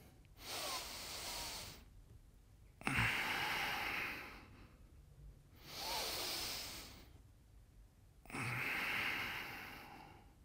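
A man breathes in and out deeply and loudly, close by.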